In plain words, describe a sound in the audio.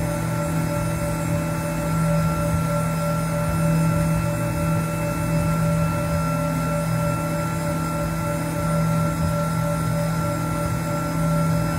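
A milling machine cutter whirs steadily as it cuts metal.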